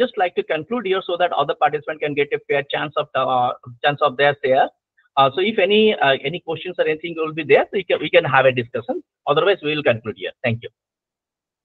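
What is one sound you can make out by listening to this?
A man speaks steadily over an online call.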